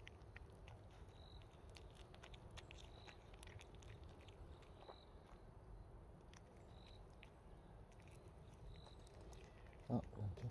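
A cat crunches dry food up close.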